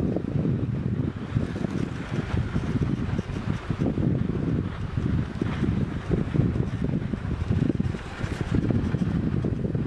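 Skis hiss and scrape over packed snow.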